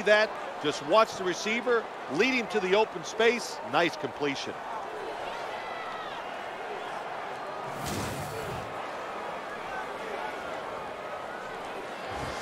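A large crowd cheers steadily in the distance.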